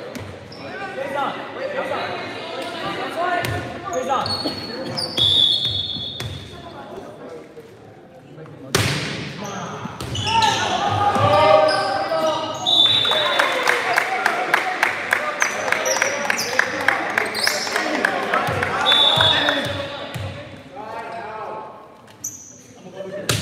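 Young men call out and shout to each other across an echoing hall.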